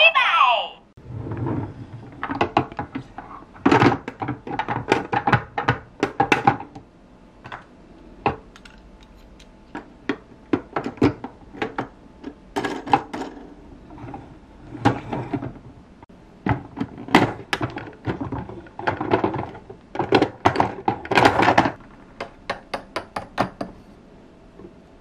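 Plastic toy parts click and knock as hands handle them.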